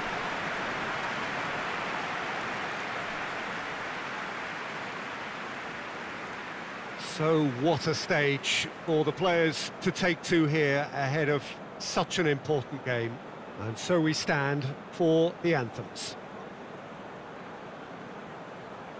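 A large stadium crowd roars and murmurs.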